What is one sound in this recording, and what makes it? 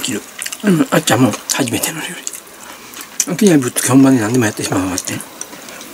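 A woman eats, chewing and slurping noodles.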